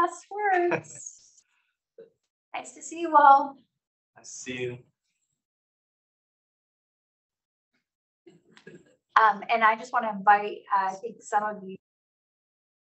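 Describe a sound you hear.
A young woman speaks with animation, a little way off.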